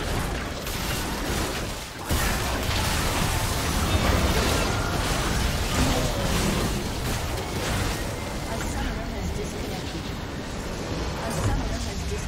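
Video game spell effects and hits clash in a busy fight.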